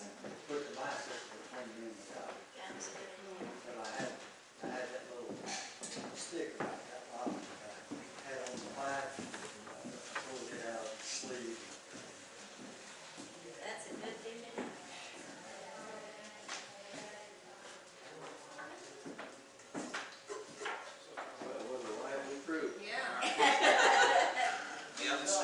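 A man talks calmly to a small audience in an echoing hall.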